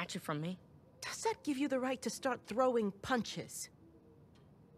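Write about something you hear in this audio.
A woman speaks sternly, close by.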